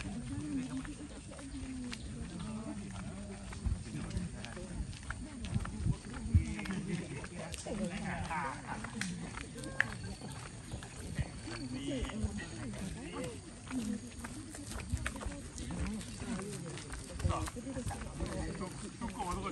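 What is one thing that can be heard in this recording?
Men talk calmly nearby outdoors.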